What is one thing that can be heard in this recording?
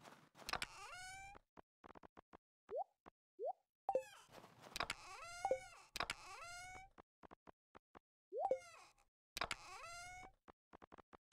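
A game chest opens with a creaking, rising sound.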